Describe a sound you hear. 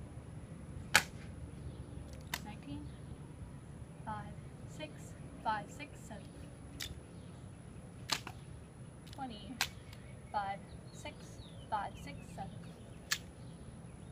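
A wooden prop rifle slaps into hands as it is caught.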